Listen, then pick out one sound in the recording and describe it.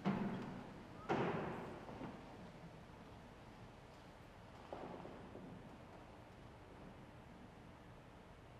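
An elderly man speaks quietly into a microphone in an echoing hall.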